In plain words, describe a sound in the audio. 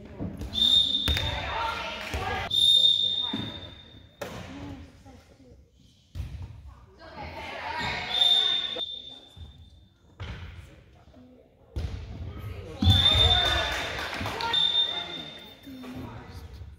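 A crowd of spectators cheers and shouts.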